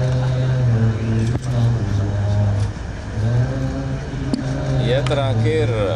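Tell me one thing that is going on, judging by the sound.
A group of men chant together in low, steady voices.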